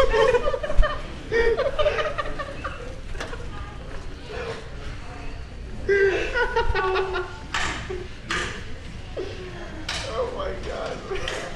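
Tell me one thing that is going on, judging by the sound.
A teenage boy speaks back close by.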